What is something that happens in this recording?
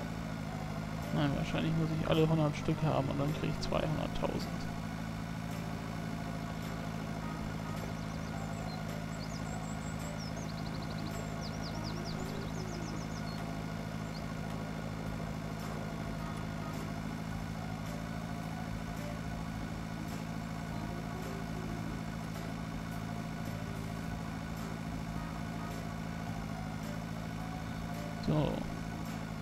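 A tractor engine hums steadily at low speed.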